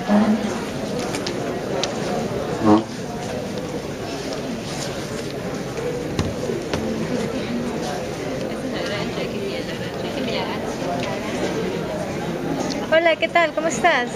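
Young people talk quietly nearby in a room full of chatter.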